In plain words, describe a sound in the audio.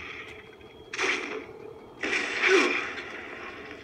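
Gunshots from a video game crack through a television speaker.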